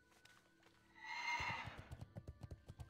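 A magic spell bursts with a shimmering whoosh.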